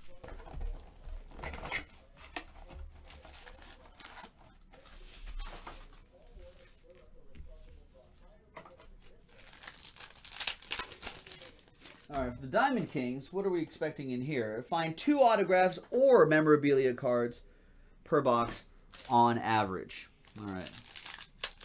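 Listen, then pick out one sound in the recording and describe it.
Foil card packs rustle and crinkle as they are torn open.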